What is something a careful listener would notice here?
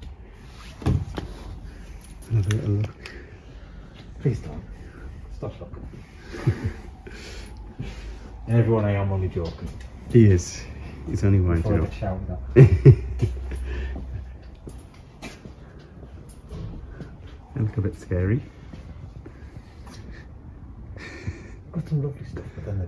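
A man talks calmly close by, with pauses.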